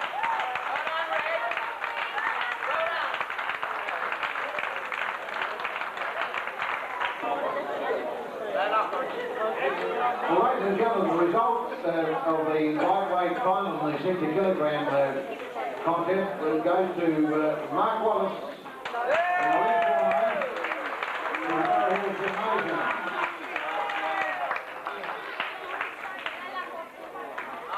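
A crowd chatters and cheers in a large hall.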